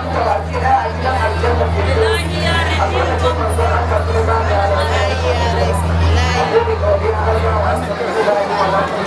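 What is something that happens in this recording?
A woman speaks steadily into a microphone, heard over loudspeakers.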